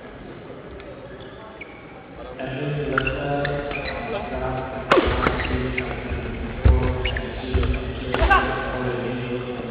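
Rackets strike a shuttlecock with sharp smacks in a large echoing hall.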